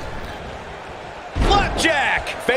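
A body slams onto a ring mat with a heavy thud.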